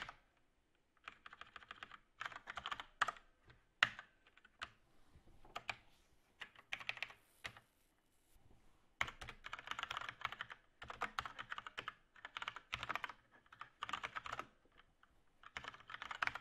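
Keys clatter quickly on a keyboard.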